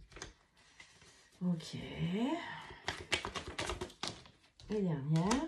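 Playing cards flick and slide as they are shuffled.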